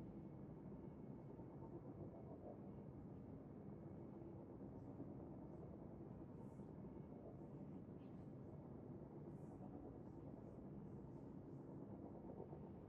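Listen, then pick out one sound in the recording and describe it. A spaceship engine hums with a steady low rumble.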